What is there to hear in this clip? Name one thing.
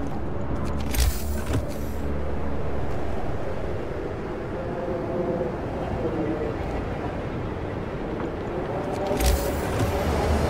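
A short whooshing click sounds twice.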